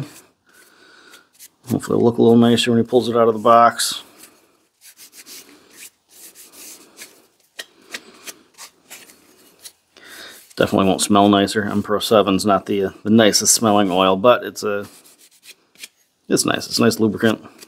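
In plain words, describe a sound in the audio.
A cloth rubs against metal.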